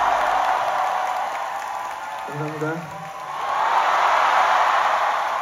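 A large crowd cheers and whistles loudly in a big hall.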